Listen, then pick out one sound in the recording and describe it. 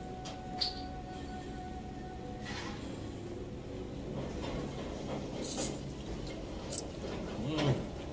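A man slurps noodles loudly up close.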